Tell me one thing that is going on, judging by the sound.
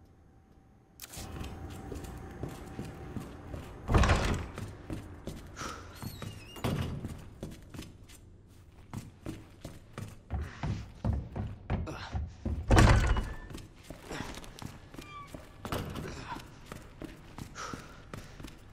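Footsteps thud quickly across a hard floor.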